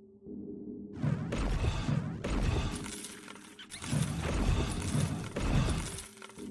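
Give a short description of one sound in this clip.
Game spell effects whoosh and crash during a fight.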